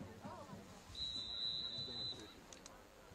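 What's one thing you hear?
A referee's whistle blows one sharp, steady blast.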